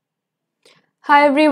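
A young woman speaks clearly into a close microphone.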